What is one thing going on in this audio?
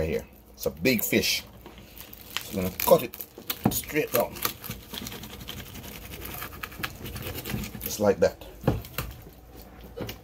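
A knife taps on a wooden cutting board.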